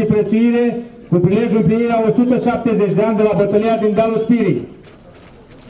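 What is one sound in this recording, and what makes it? An elderly man speaks into a microphone through loudspeakers, calmly and formally.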